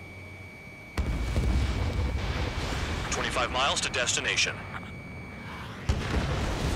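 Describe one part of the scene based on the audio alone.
Explosions boom in bursts.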